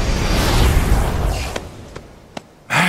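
A dark magic swirl whooshes and fades.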